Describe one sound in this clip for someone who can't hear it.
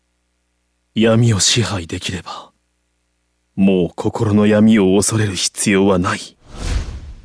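A young man speaks calmly and firmly.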